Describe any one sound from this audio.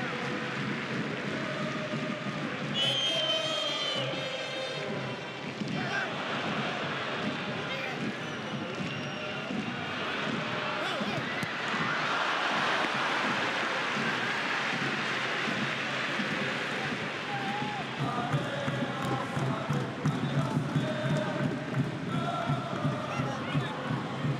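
A large stadium crowd roars and chants, filling a wide open space.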